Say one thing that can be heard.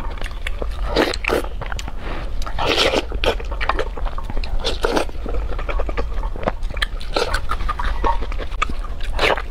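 A young woman chews and slurps food wetly close to a microphone.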